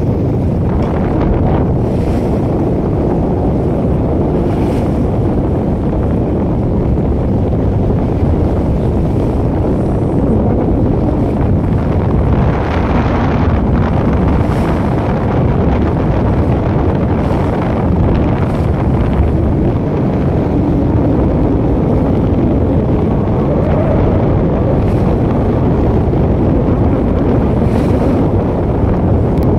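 Water rushes and splashes steadily against a ship's hull.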